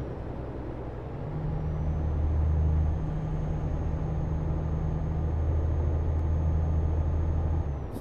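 Tyres roll on the road with a steady rush.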